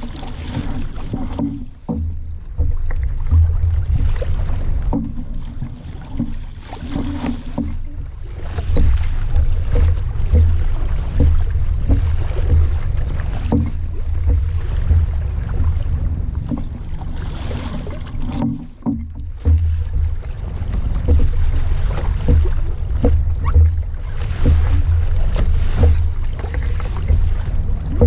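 Water splashes and gurgles against a sailing boat's hull.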